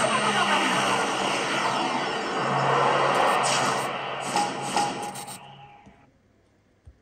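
A racing car engine roars loudly through a small speaker, then fades away.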